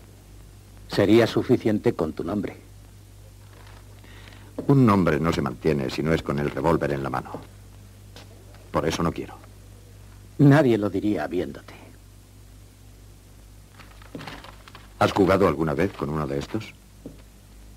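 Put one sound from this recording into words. A middle-aged man answers calmly, close by.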